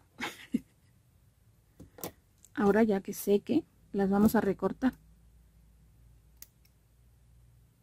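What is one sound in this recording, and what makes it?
Small scissors snip a thread.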